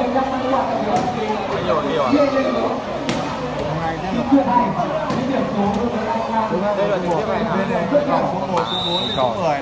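A ball is kicked with sharp thuds.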